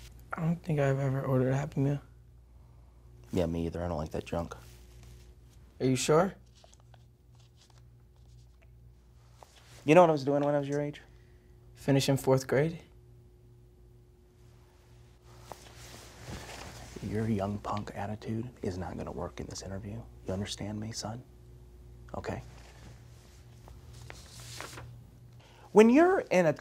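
A young man answers in short, quiet replies close to a microphone.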